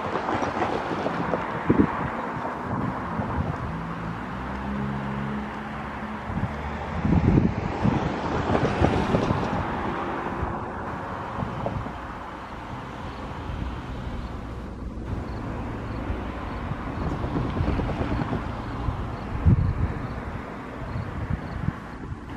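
An electric train rumbles slowly along the tracks, drawing closer.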